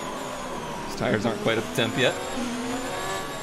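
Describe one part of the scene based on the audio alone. A racing car engine whines past close by.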